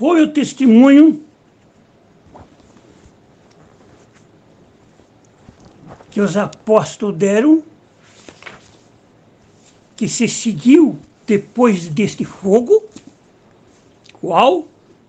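An elderly man reads aloud slowly and solemnly, close to a microphone, with long pauses.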